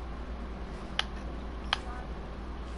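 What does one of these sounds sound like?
Building pieces in a video game snap into place with sharp clacks.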